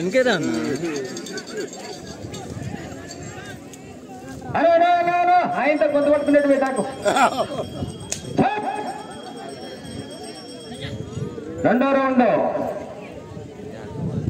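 A crowd of men shouts and cheers outdoors.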